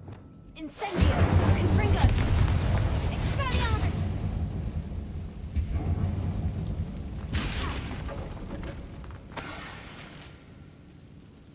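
Flames roar and crackle in bursts.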